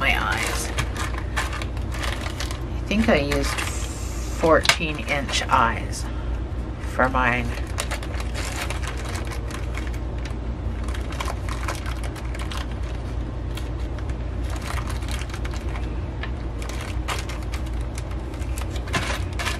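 A plastic bag crinkles and rustles between fingers.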